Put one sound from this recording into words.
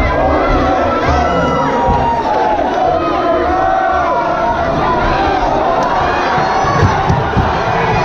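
Gloved punches thud against a boxer.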